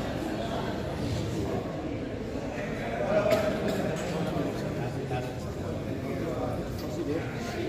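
A crowd of men and women chatter in a large echoing hall.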